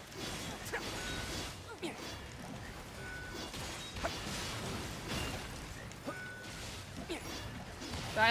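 Game explosions boom and crackle.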